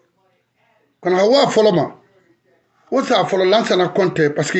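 A man speaks with animation close to a microphone.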